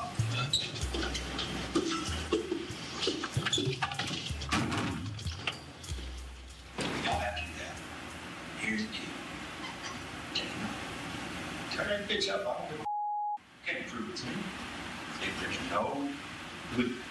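A man speaks roughly, muffled and close by.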